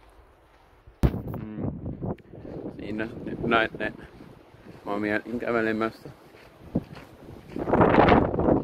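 A young man talks calmly close to the microphone, outdoors.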